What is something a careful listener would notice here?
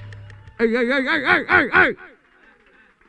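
A man sings loudly into a microphone with a wavering voice.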